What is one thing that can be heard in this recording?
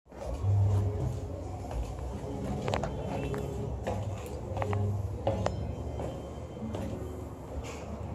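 Footsteps clank on metal stairs.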